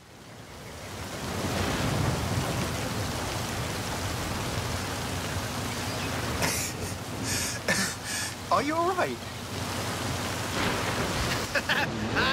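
A waterfall rushes with a steady roar.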